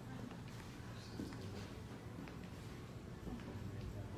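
People murmur indistinctly in the background.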